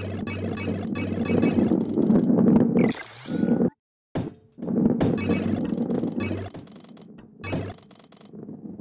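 Coins chime in quick bright pings as they are collected.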